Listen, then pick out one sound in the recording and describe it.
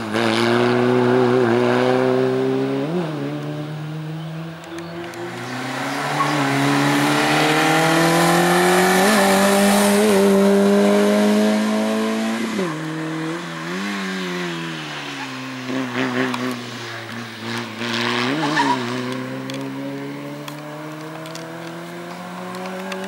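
A rally car engine roars loudly, revving up and down through its gears.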